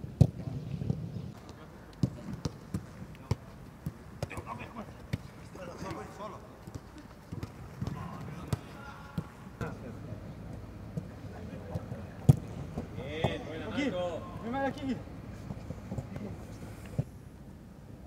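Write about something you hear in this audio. A football is kicked with sharp thuds, again and again.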